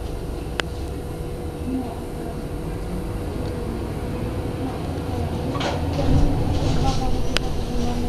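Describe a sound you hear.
A city bus drives past, heard through a window.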